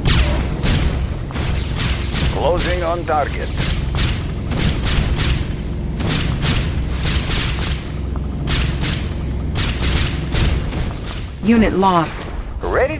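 A low rumble of battle runs on steadily.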